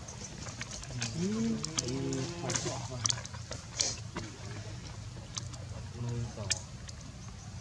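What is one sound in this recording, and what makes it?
A baby monkey squeaks and whimpers nearby.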